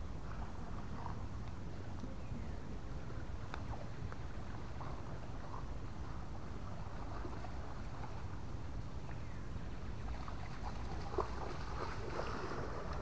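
A slow river flows quietly.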